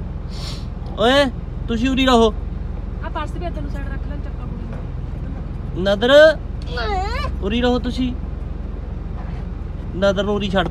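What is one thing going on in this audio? A woman speaks close by in a high, playful sing-song voice.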